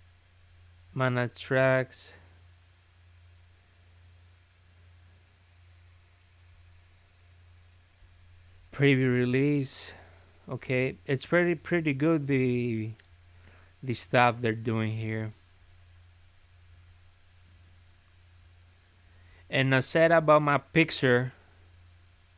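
A young man talks calmly into a nearby microphone, in short bursts.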